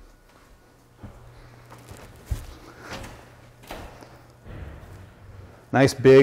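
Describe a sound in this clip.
Footsteps tread across a hard floor.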